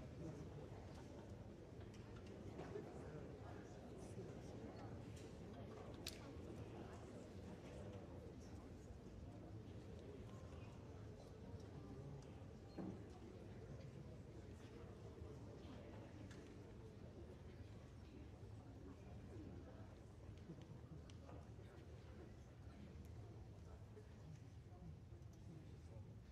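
A large audience murmurs and chatters in a big echoing hall.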